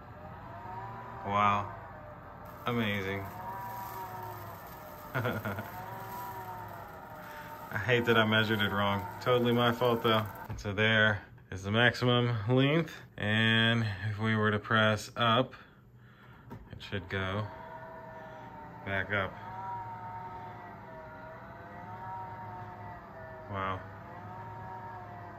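A motorized window shade hums steadily as it rolls down and up.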